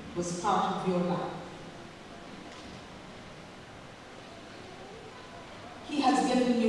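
A woman speaks slowly and clearly through a microphone, with pauses, in an echoing hall.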